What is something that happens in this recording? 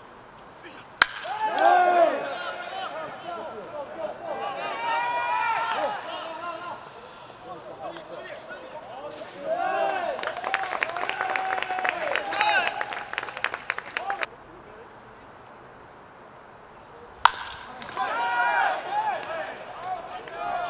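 Young men shout and cheer excitedly nearby, outdoors.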